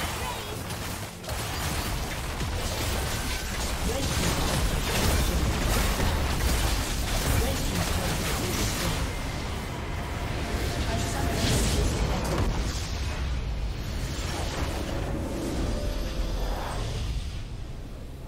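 Spells, blasts and clashes crackle in a busy video game battle.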